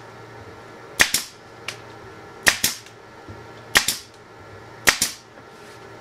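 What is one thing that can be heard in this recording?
A pneumatic staple gun fires with sharp snaps.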